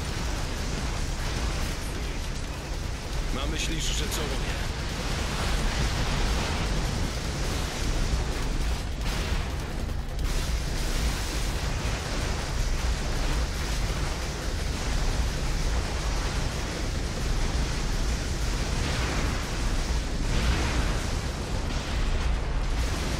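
Energy blasts crackle and roar.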